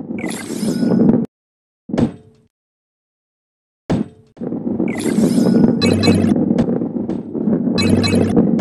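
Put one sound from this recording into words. A ball rolls with a low, steady rumble.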